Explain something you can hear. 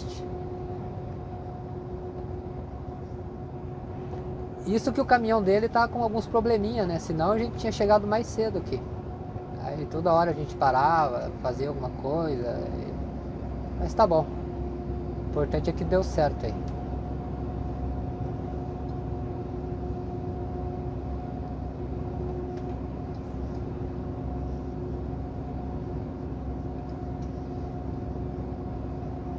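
A vehicle's engine hums steadily while driving.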